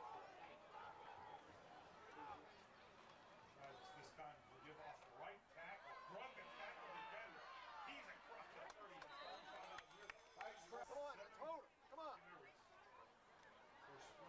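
A crowd cheers and shouts in the stands, outdoors.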